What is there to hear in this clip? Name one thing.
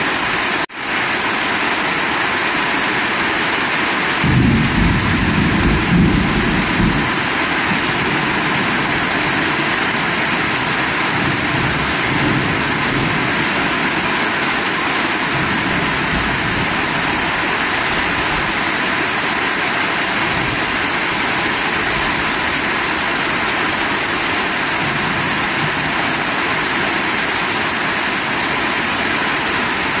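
Rain drums hard on a metal roof.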